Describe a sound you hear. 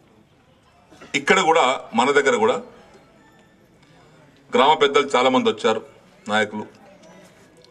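A middle-aged man speaks forcefully into a microphone through a loudspeaker, in short bursts.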